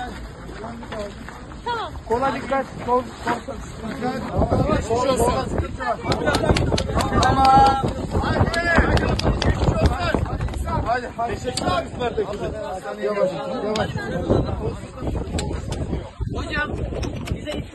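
A crowd of men talks and shouts excitedly close by.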